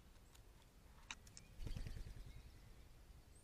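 A magpie's wings flap as it takes off.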